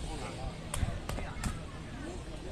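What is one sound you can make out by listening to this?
A ball is struck sharply several times.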